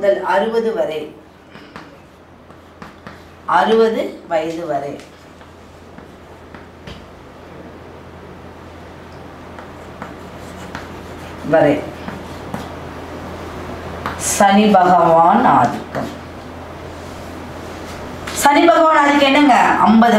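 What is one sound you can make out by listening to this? A woman speaks calmly and clearly, close by, in short phrases with pauses.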